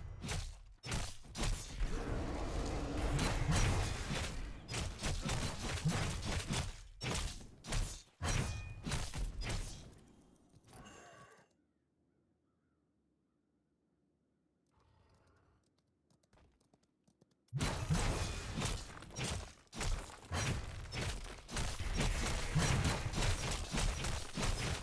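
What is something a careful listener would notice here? Spell blasts and weapon hits crackle and thud in a busy fight.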